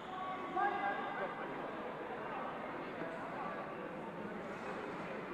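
A crowd of people talks and calls out in a large echoing hall.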